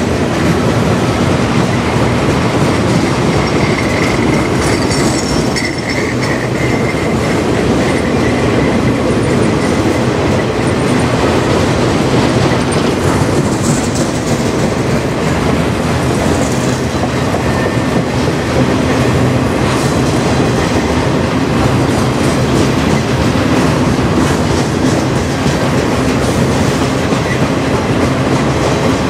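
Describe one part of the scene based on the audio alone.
Freight cars rumble and clatter loudly past at close range.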